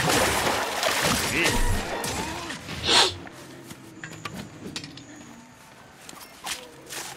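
A heavy blade slashes and strikes flesh.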